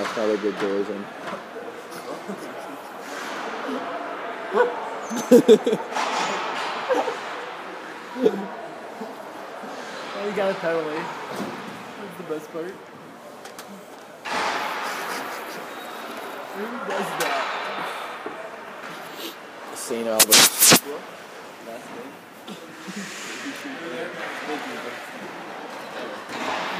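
Skates scrape on the ice.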